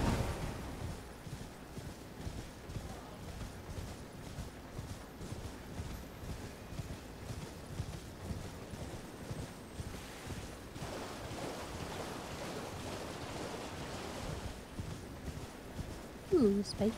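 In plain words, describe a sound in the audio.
A horse gallops with heavy, rhythmic hoofbeats.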